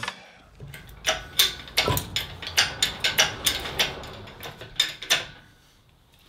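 Metal tools clink and knock against an engine block.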